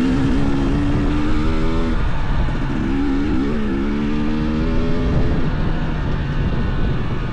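A motorcycle engine hums and revs up and down close by.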